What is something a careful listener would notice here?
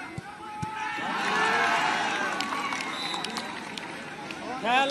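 A crowd cheers loudly after a kick.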